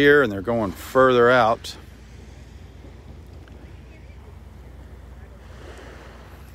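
Small waves lap softly on the shore.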